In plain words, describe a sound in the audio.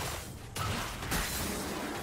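A magical spell whooshes and shimmers.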